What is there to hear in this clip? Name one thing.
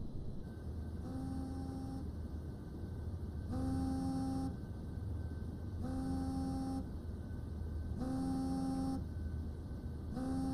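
A phone rings with a repeating electronic tone.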